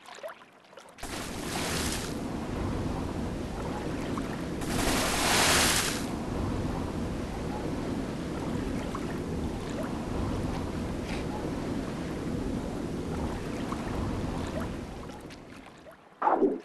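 Water rumbles in a low, steady underwater drone.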